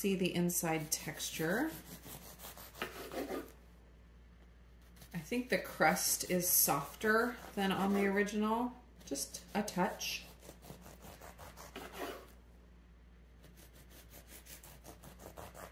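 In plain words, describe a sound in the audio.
A bread knife saws through a soft loaf with a quiet rasping.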